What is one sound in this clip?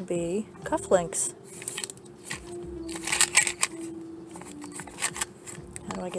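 Small hard objects rattle inside a plastic box.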